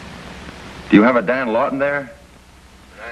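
A man speaks into a telephone.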